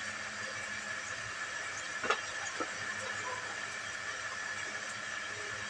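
A fire crackles and hisses steadily outdoors.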